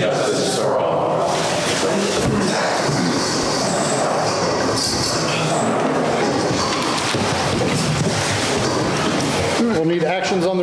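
Many people chatter at once.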